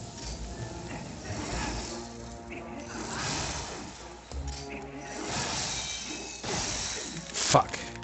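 A video game's icy creature bursts apart with a hissing, crackling roar.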